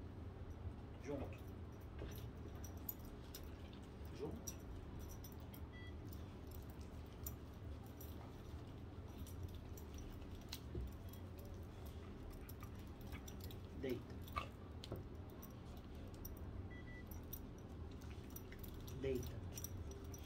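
A puppy whimpers in short, high cries.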